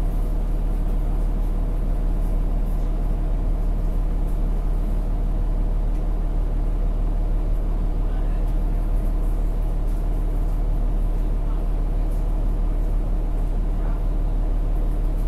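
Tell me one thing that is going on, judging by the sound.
A bus engine hums low and steady from inside the bus.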